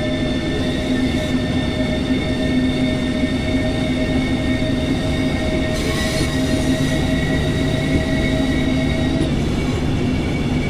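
An electric train hums steadily as it runs along the tracks.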